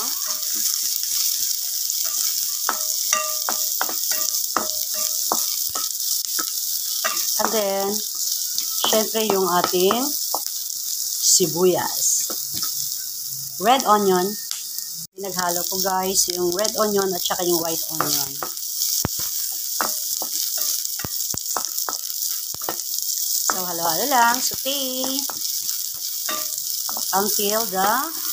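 A wooden spoon scrapes and taps against a metal pan.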